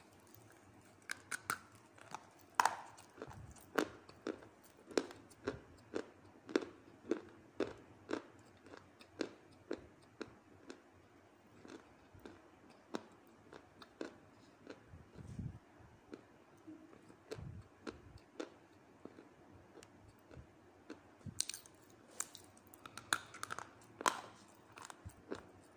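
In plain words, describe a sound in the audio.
Chalky clay crumbles and crunches softly between fingers.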